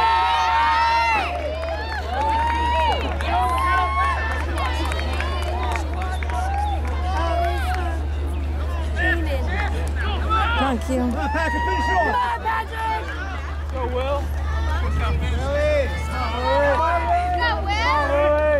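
A crowd of young spectators cheers and shouts excitedly outdoors.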